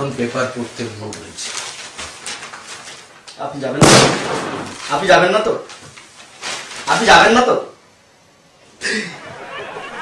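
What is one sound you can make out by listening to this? A newspaper rustles as its pages are handled.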